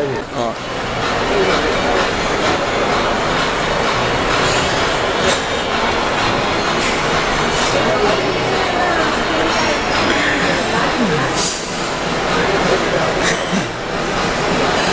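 Crowd chatter murmurs through a large echoing hall.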